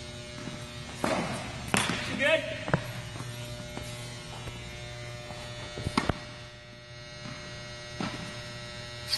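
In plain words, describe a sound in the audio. A tennis racket strikes a ball with sharp pops in a large echoing hall.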